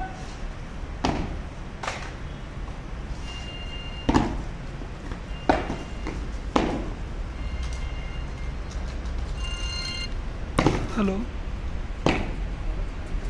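Boots stamp sharply on the ground in unison.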